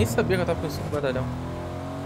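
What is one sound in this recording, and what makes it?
A car engine hums as a vehicle drives off.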